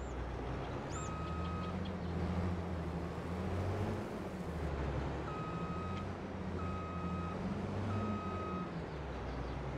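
A warning beeper beeps in short bursts.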